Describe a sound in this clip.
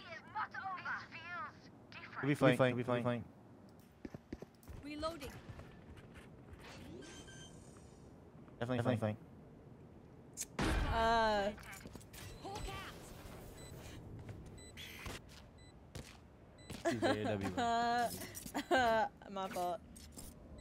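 A young woman talks and laughs with animation into a close microphone.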